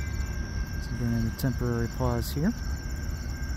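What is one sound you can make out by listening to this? A train horn blares in two long blasts.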